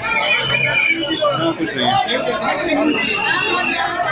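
A dense crowd of people chatters and shouts close by.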